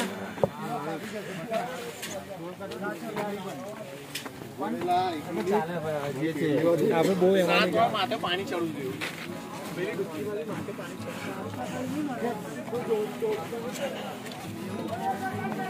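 Footsteps scuff on a stone path outdoors.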